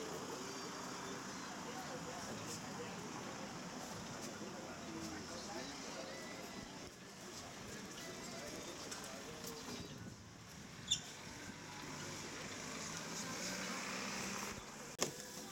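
A young man talks calmly, close by.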